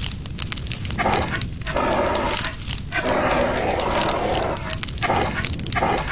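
A fire extinguisher hisses in bursts.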